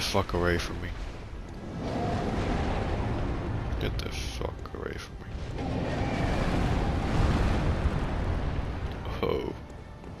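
A heavy blade whooshes and strikes in short bursts.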